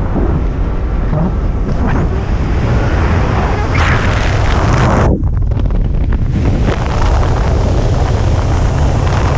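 Wind roars loudly past during a fast freefall, then quietens to a softer rush.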